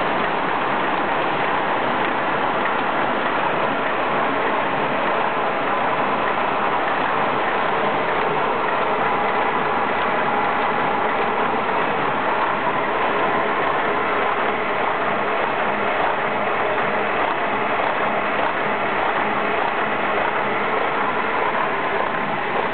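Industrial machines clatter and whir steadily.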